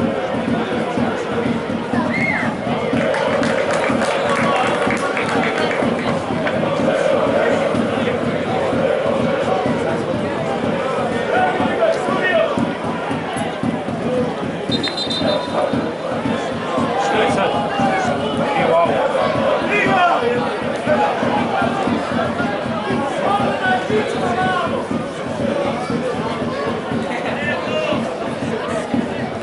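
Men shout and call out to each other across an open outdoor pitch.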